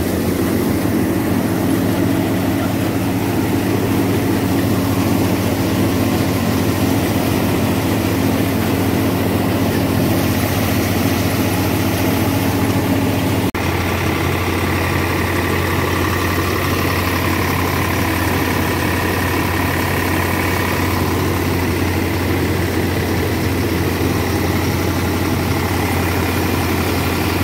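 A thresher machine whirs as it threshes grain.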